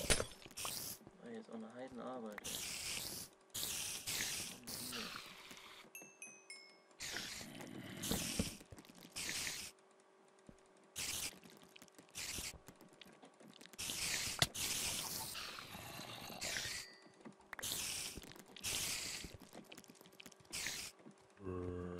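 A spider hisses and chitters nearby.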